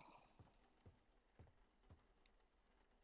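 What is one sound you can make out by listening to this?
Soft footsteps thud at a slow, even pace.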